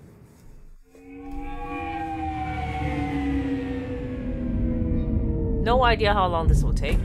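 A flying car's engine whines and whooshes past, its pitch slowly falling.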